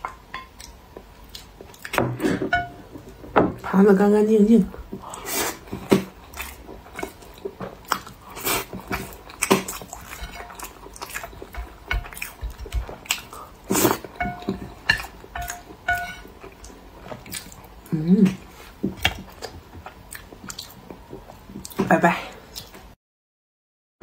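Chopsticks clink against a plate.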